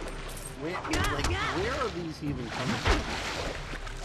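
Sword blows whoosh and strike with sharp hits.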